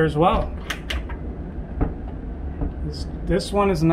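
A cabinet latch clicks as a hand presses it.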